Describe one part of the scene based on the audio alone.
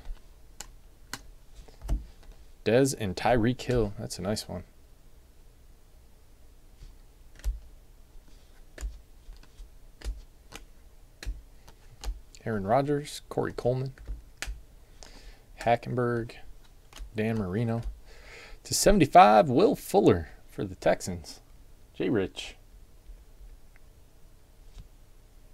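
Trading cards flick and rustle as they are sorted by hand.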